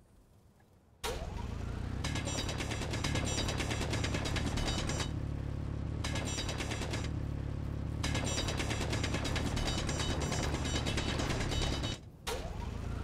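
A power drill grinds loudly through rock.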